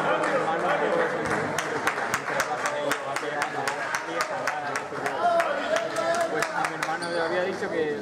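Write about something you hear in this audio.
A basketball bounces rapidly on a hard court.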